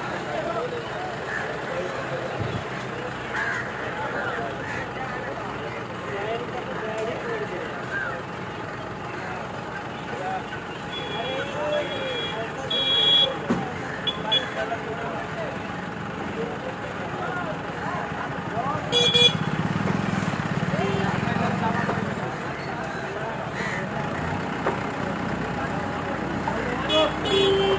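Crows caw repeatedly nearby, outdoors.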